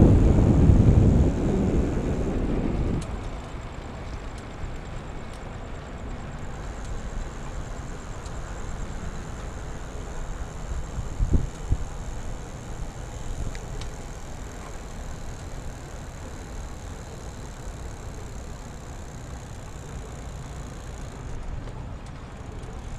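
Bicycle tyres roll steadily on pavement.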